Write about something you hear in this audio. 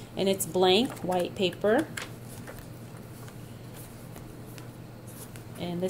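Paper pages rustle and flip softly.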